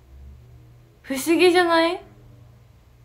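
A young woman speaks briefly in a high, drawn-out voice close to a microphone.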